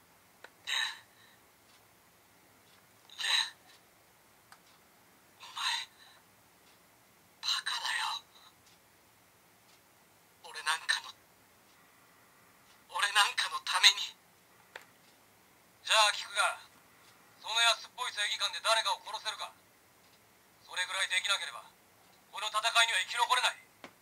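A toy belt buckle plays short recorded voice lines through a small speaker, one after another.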